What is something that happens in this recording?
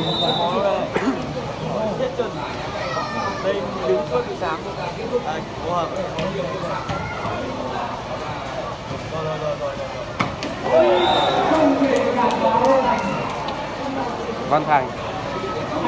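A ball is struck with sharp thuds.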